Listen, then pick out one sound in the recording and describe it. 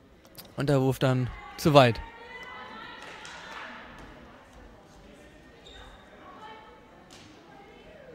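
A handball bounces on a hard floor in an echoing hall.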